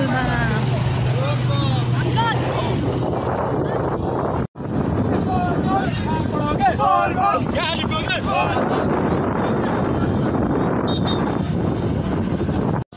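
A crowd of men chant and shout loudly outdoors.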